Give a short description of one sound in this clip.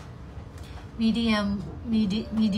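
A young woman speaks close to a microphone.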